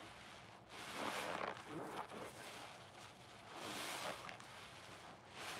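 Soap suds crackle and fizz.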